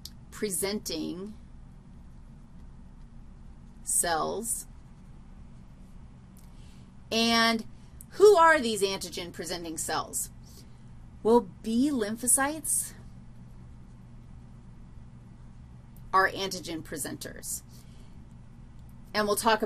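A woman speaks with animation, close to a microphone, in short bursts with pauses.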